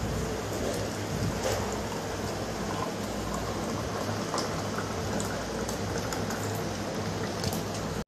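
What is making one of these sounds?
Juice splashes as it is poured into a glass.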